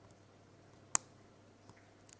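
A key snaps with a sharp crack.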